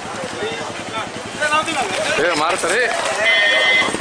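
Runners' feet patter on the road as a race starts.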